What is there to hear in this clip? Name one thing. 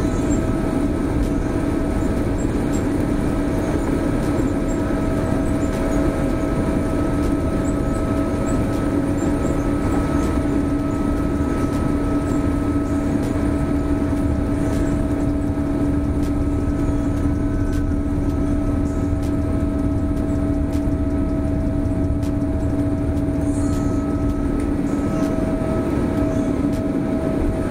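Jet engines roar steadily with a droning hum as heard from inside a plane.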